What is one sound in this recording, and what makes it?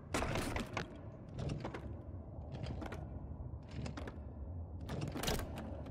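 A metal handle clicks and grinds as it is turned.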